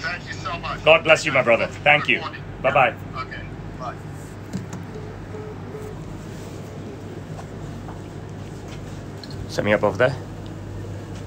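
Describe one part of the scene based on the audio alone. A man speaks close to a phone microphone, with animation.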